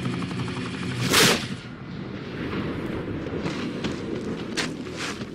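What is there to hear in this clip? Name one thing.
A loud explosion bursts and rumbles.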